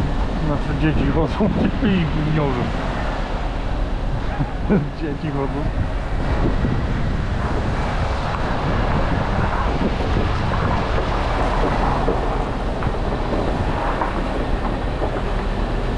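A heavy truck engine rumbles nearby.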